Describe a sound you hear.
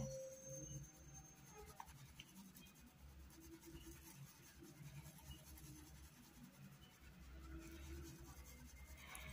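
A paintbrush softly brushes across cloth.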